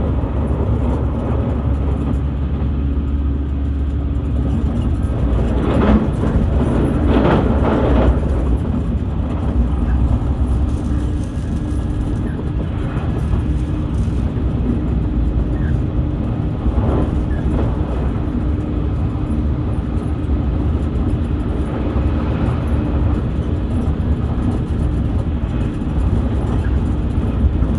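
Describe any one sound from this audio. A car engine hums steadily with low road rumble as the car drives.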